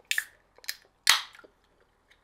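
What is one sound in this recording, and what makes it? A can hisses and clicks open.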